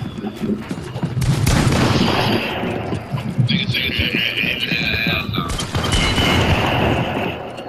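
Game building pieces snap into place with quick thuds.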